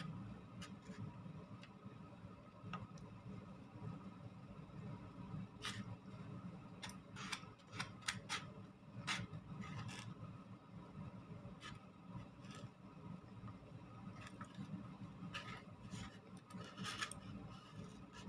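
A fork and spoon clink against a plate.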